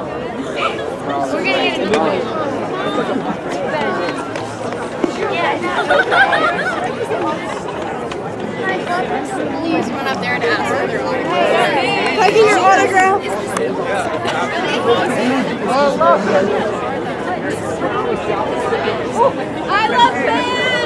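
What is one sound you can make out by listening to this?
A crowd of young men and women chatters and laughs all around outdoors.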